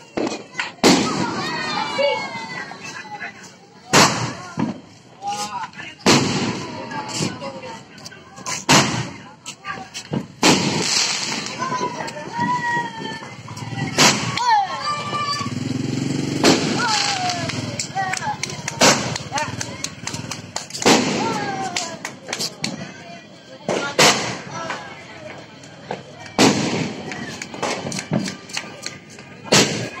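Fireworks bang loudly overhead, one after another.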